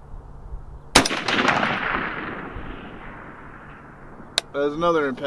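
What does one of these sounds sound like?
A rifle fires a single loud shot that echoes and rolls away outdoors.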